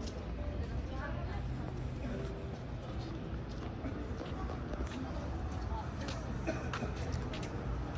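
Footsteps tap on pavement outdoors with a low wind rumble.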